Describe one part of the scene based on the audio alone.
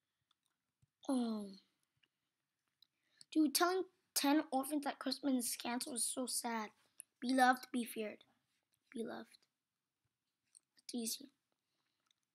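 A boy talks with animation close to a microphone, in short bursts.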